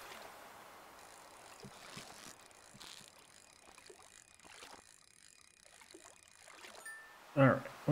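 A fishing reel whirs and clicks steadily.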